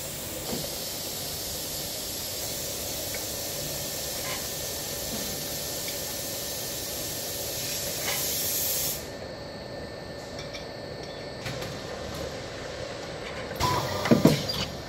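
A canning machine hums and whirs steadily.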